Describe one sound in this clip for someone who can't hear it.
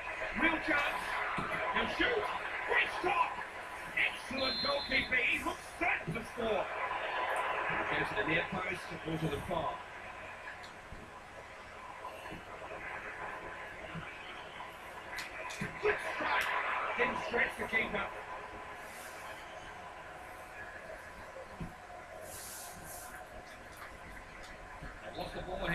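A stadium crowd roars through a small television speaker.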